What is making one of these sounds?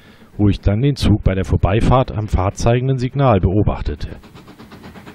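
A steam locomotive whistle blows loudly in several long blasts.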